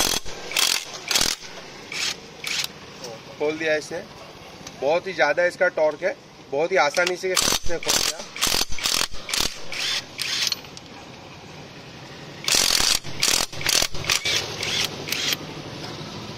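An impact wrench hammers in short, rattling bursts.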